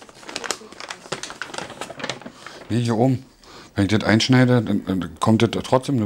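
Wrapping paper tears open.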